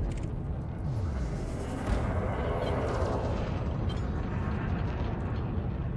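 A spaceship engine hums with a deep, steady rumble.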